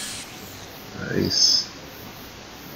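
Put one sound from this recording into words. A magical spell effect whooshes briefly.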